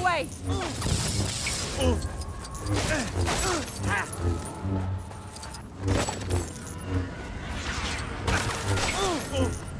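A lightsaber slashes through objects with crackling bursts.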